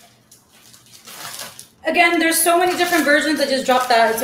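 A plastic bag crinkles.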